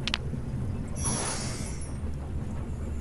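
A short chiming game sound effect plays.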